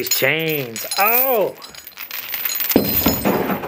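Heavy metal chains clink and rattle.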